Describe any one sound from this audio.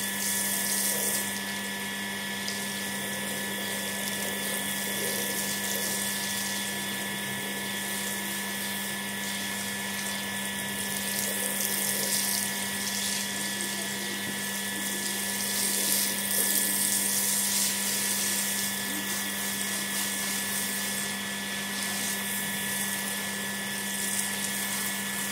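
Water sprays from a hose and splashes onto a wet mat.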